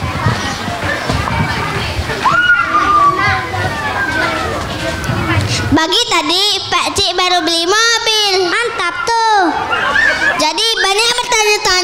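A young boy recites loudly through a microphone and loudspeaker.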